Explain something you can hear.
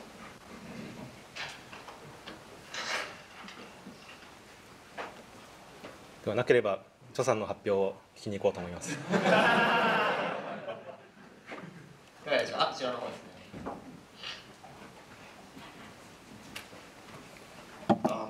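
A young man speaks into a microphone over loudspeakers in a large hall, calmly, with pauses.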